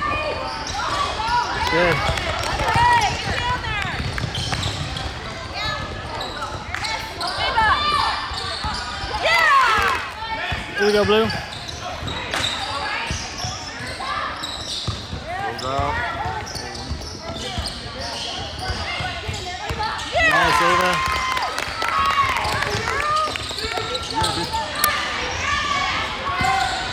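Sneakers squeak on a hardwood court in a large echoing gym.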